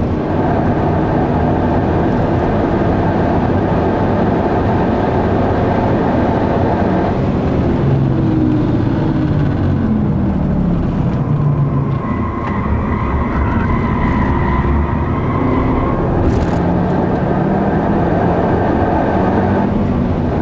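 A car engine roars loudly from inside the cabin, rising and falling in pitch as it speeds up and slows down.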